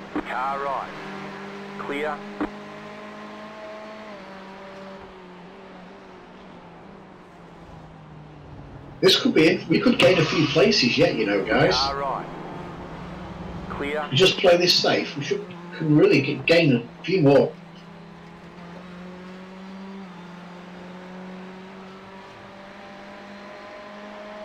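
Racing car engines roar and rise and fall in pitch as they shift gears.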